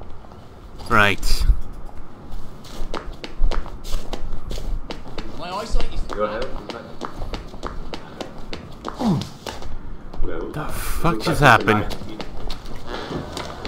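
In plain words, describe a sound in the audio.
Footsteps tap steadily on cobblestones.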